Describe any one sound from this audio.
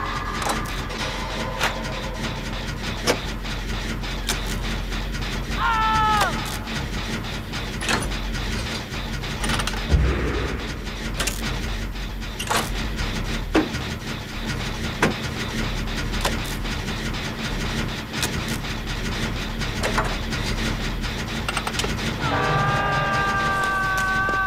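Metal parts of an engine rattle and clank as they are worked on.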